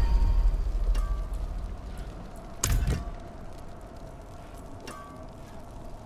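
Soft interface chimes ring as menus open and close.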